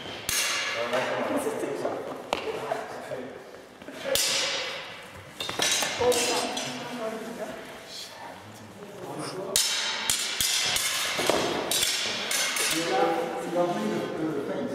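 Footsteps squeak and thud on a hard floor in a large echoing hall.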